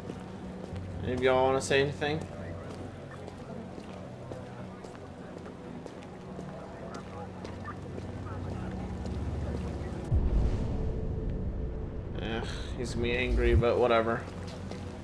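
A man exclaims in alarm nearby.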